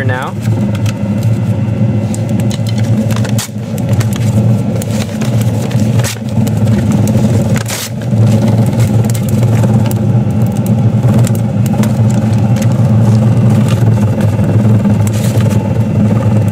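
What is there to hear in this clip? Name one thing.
Wood chips clink and scrape inside a metal pipe.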